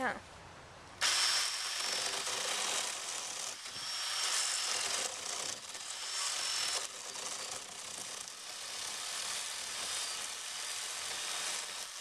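An electric chainsaw starts suddenly and whirs steadily.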